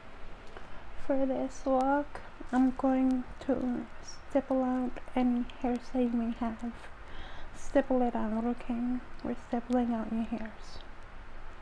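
A young woman speaks with animation, close to the microphone.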